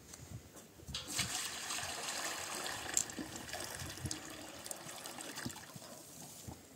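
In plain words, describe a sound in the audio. Water pours from a plastic jug into a metal basin.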